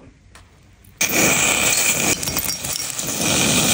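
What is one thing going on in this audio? Water pours and splashes onto a hard surface.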